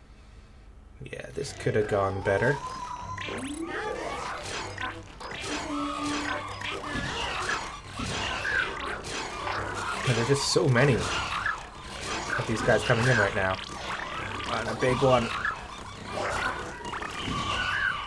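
Upbeat game music plays with chirps and effects.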